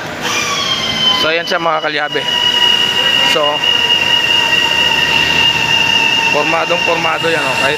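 A man speaks loudly nearby, giving directions.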